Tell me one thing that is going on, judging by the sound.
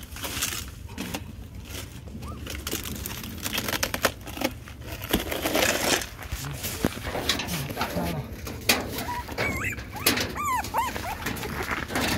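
A wooden box scrapes and knocks on gravel.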